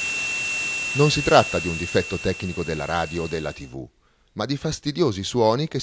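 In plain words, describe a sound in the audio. A portable radio suddenly blares loudly in choppy bursts.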